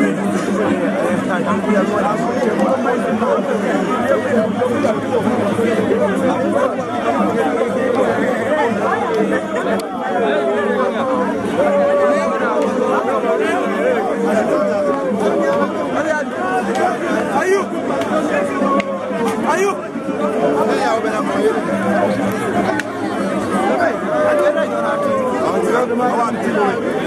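Men and women in the crowd cheer and call out loudly.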